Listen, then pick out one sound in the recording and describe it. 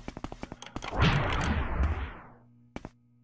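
A heavy door grinds open.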